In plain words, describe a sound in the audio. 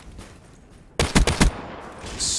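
Gunfire rings out in a quick burst.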